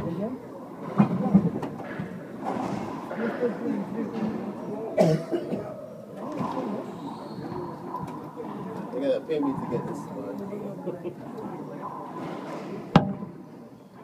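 A ball smacks hard against the walls of an echoing court.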